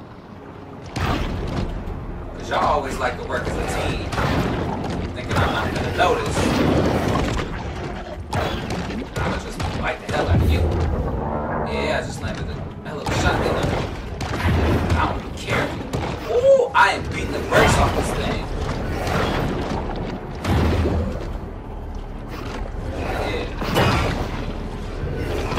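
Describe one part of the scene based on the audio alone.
Underwater game sounds rumble and thud as a shark attacks.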